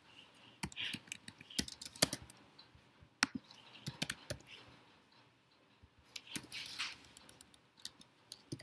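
Keyboard keys click quickly and unevenly as someone types.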